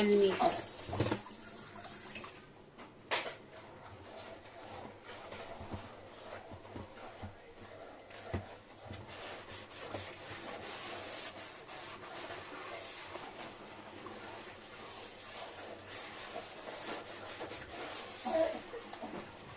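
Dishes clink and knock lightly as they are handled.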